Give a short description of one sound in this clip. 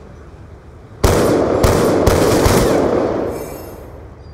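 A sniper rifle fires several loud, booming shots that echo away.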